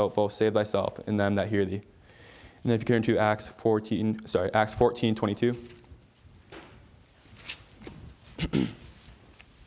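Paper pages rustle as a man turns them.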